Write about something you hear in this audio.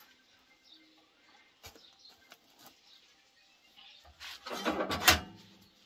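Wood knocks against wood as it is pushed into a fire.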